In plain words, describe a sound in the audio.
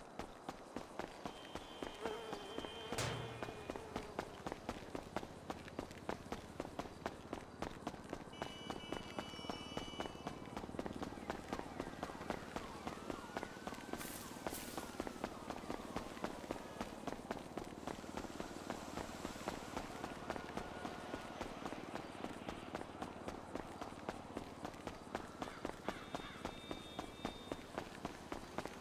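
Footsteps patter quickly and steadily on pavement.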